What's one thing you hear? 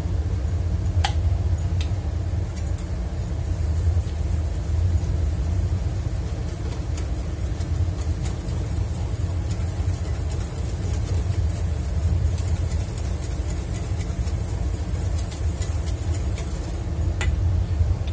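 A wire whisk scrapes and clinks against a metal bowl.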